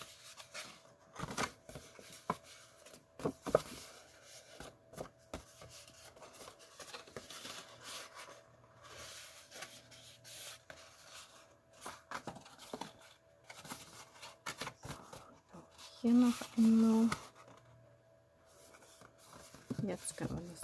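Stiff paper rustles and crinkles as hands fold and bend it.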